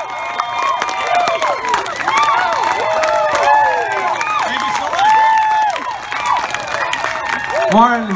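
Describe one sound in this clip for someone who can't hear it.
A crowd cheers and screams close by.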